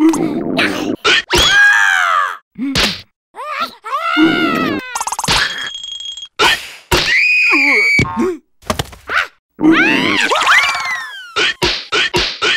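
Cartoon creatures squeal in sliding, wailing cries.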